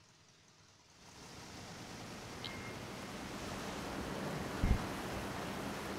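A boat's motor hums steadily.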